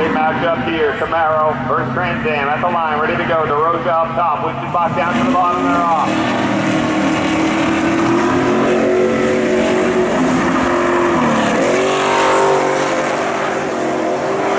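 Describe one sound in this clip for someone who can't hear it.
Car engines rev hard and bounce off the limiter.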